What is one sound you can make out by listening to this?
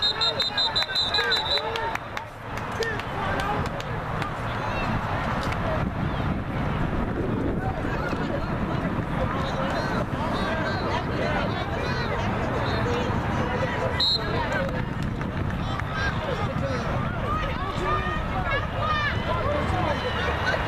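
Football players' pads clash as they collide.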